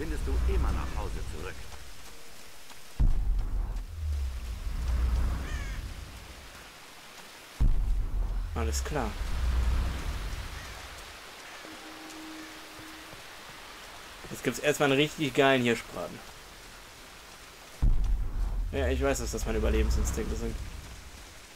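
Footsteps crunch over a forest floor.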